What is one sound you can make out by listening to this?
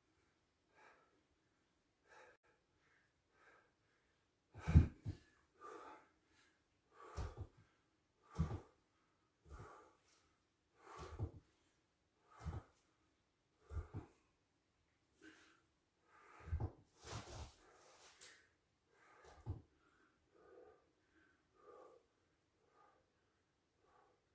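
A young man breathes out hard with each effort, close by.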